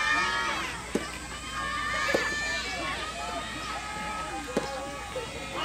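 A tennis ball is struck by a racket with sharp pops.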